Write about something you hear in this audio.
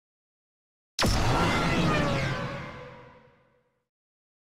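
A sports car engine revs loudly and fades away.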